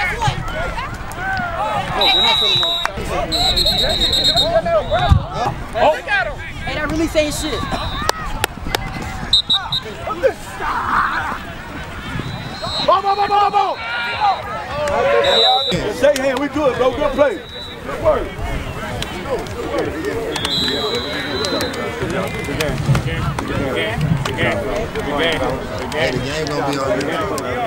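A crowd of young men and women chatters and shouts outdoors.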